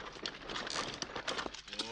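A donkey cart's wheels rattle over rough ground.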